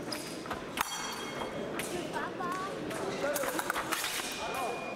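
Steel blades clash and scrape together.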